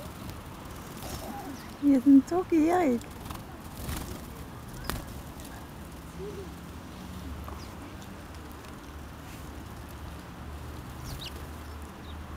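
Small birds flutter their wings as they take off.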